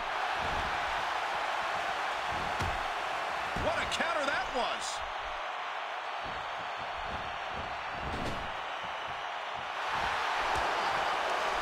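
Blows and bodies thud against each other in a wrestling ring.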